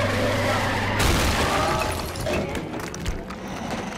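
Tyres screech on the road.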